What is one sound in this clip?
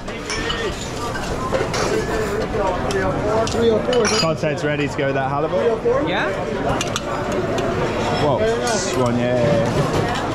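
Plates and utensils clink and clatter.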